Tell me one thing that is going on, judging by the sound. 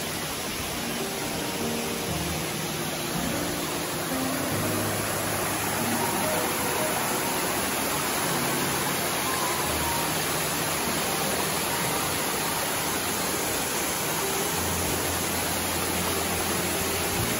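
Water rushes over rocks in a stream.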